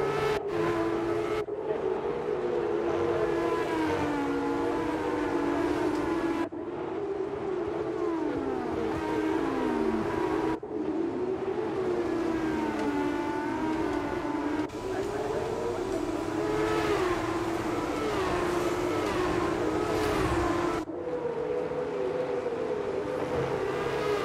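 Racing car engines scream at high revs, rising and falling as they shift gears and pass by.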